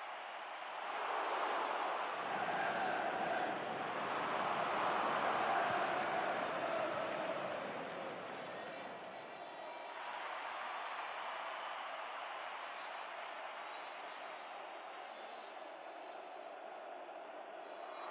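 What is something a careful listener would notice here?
A stadium crowd roars steadily, louder early on and then settling.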